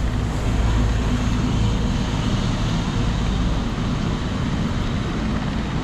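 A bus engine idles and rumbles nearby.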